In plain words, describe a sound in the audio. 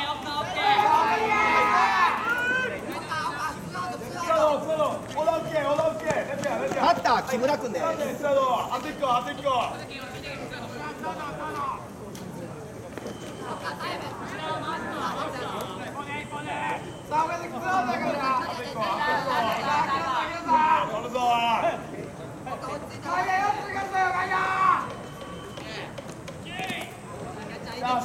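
Young men shout and chant loudly outdoors.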